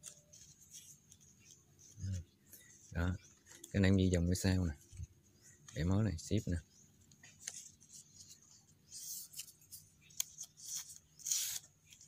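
Palm leaves rustle and crinkle as hands fold them.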